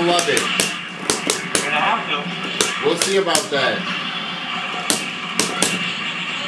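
Fighting game hits and blasts crack and thud in quick bursts through a television speaker.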